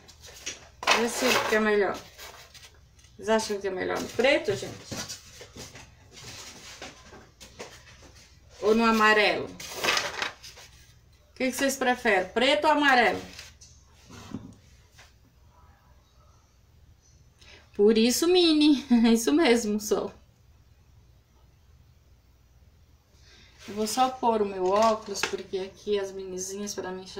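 A woman talks calmly and close by, in bursts with pauses.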